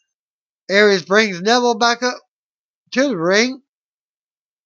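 A man speaks close to the microphone with animation, in two short bursts, then falls silent.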